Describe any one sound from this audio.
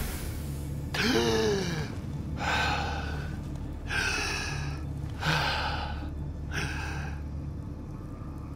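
A young man gasps and breathes heavily, close by.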